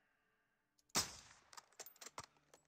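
A rifle fires a single loud, sharp shot.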